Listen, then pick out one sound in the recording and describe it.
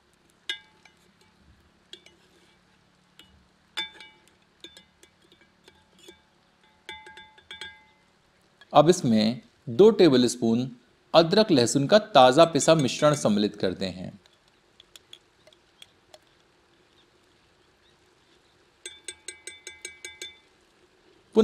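A metal spoon scrapes and clinks against the inside of a metal pot.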